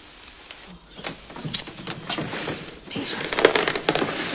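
A woman rummages through a wooden desk with small knocks and clatters.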